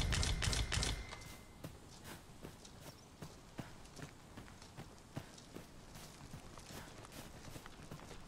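Footsteps crunch through grass at a steady pace.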